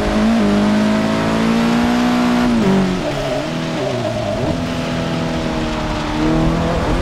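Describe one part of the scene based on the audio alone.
A car engine hums steadily and shifts pitch as it changes gears.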